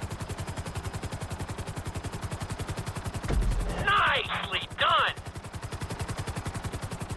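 Helicopter rotor blades chop rapidly and steadily.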